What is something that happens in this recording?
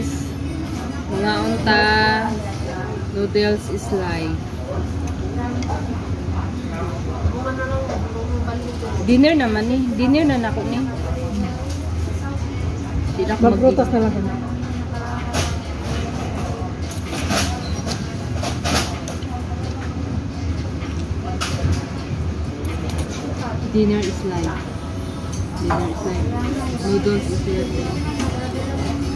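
Voices of several people chatter in the background.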